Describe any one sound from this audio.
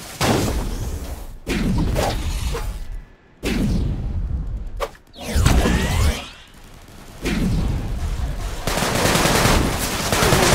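Footsteps thud and land heavily on a rooftop.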